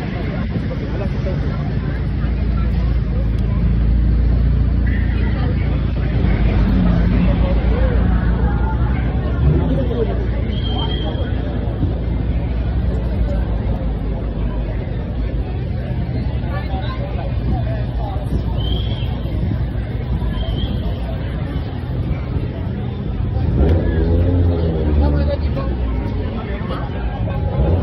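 Cars drive slowly past on the street.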